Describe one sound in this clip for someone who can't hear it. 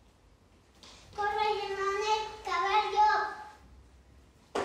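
A young girl calls out loudly in a high voice.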